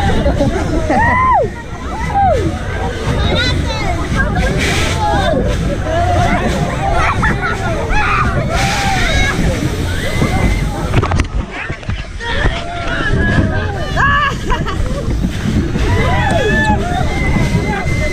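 A fairground ride rumbles and whooshes.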